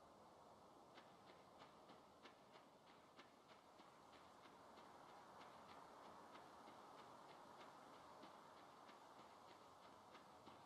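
Footsteps patter steadily on soft ground.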